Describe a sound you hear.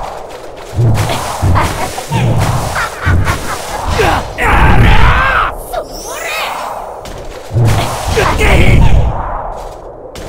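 A monster lets out eerie, warbling screeches.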